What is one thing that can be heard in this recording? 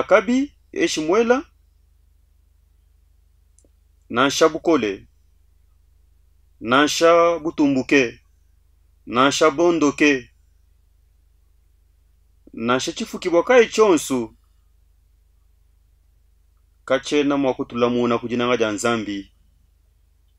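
A man speaks slowly and solemnly into a close microphone, with long pauses between phrases.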